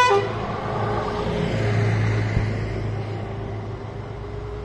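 A second bus rumbles along the road toward the listener.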